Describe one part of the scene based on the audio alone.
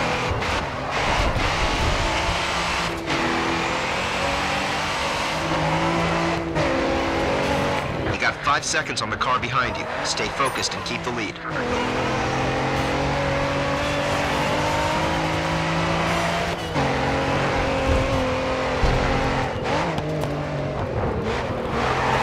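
A sports car engine revs hard and shifts up through the gears.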